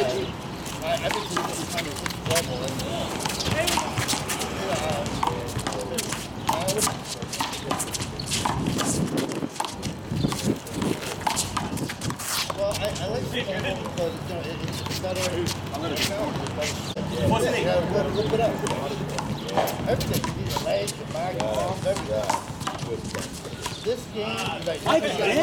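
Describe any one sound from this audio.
Men call out to one another outdoors.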